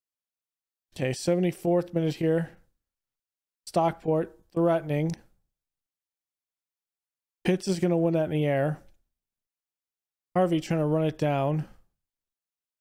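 A man talks with animation into a close microphone, in short bursts.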